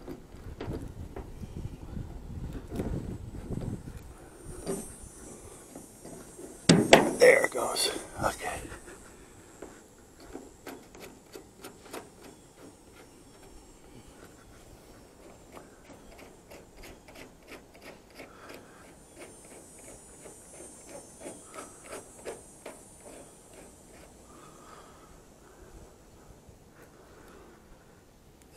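Plastic clicks and knocks sharply as a part is fitted in place.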